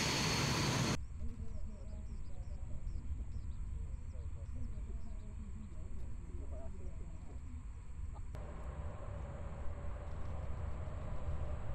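Distant jet engines rumble low and steady.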